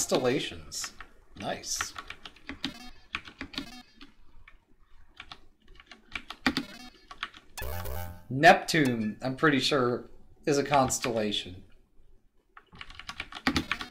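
Short electronic game blips sound as a figure moves.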